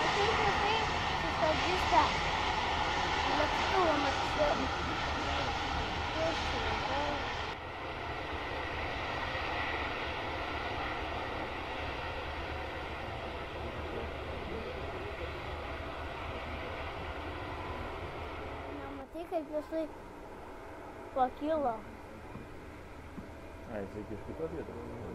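A jet airliner's engines roar steadily as the plane taxis nearby.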